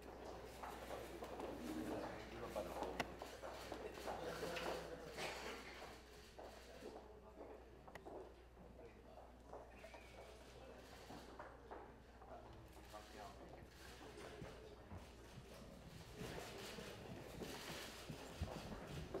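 A crowd of men and women chatter nearby in a room.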